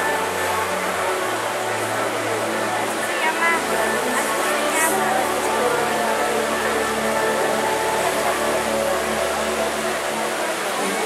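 Water fountains spray and splash steadily.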